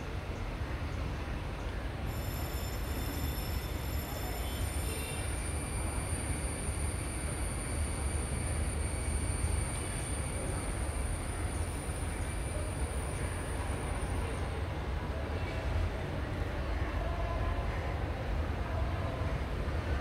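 Men talk quietly nearby outdoors.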